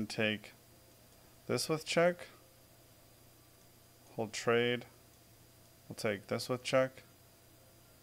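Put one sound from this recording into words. A man speaks calmly and thoughtfully into a close microphone, in short bursts.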